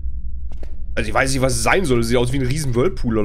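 A man speaks close to a microphone with animation.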